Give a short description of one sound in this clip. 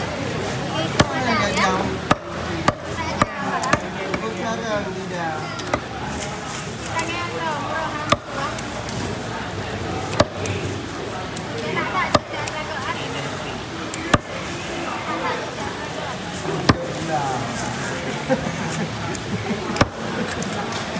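A heavy knife chops sharply against a wooden board.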